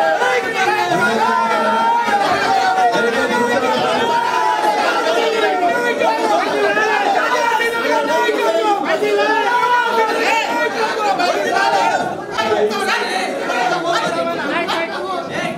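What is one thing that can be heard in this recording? A crowd of men murmurs and chatters.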